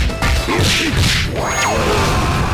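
Punches land with heavy, sharp thuds in quick succession.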